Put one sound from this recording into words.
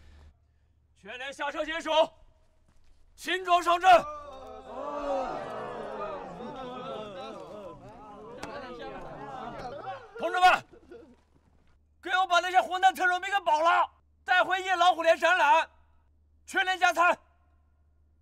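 A man shouts orders.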